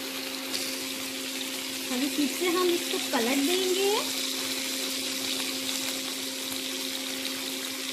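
Chicken pieces sizzle steadily in hot oil in a pan.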